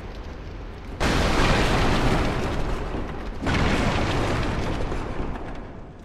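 Wooden barrels smash and clatter.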